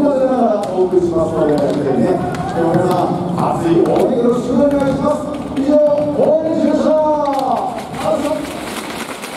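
A crowd sings and chants loudly in a large echoing hall.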